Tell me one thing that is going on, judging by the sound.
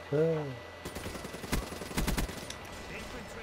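Gunshots fire in a short burst.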